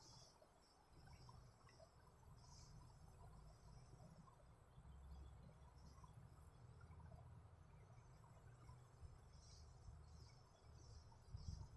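A duster rubs softly across a chalkboard.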